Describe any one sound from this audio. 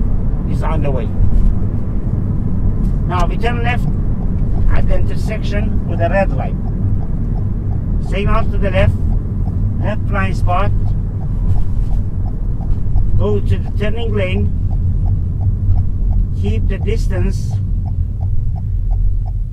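A car engine hums steadily as tyres roll over the road.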